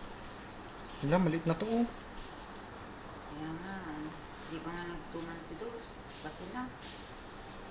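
A man talks softly and gently close by.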